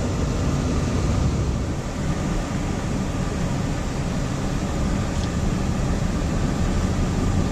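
Strong wind blows and buffets loudly outdoors.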